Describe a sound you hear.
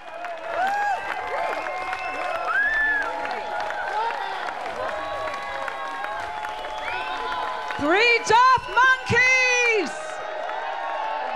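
A large outdoor crowd cheers and claps.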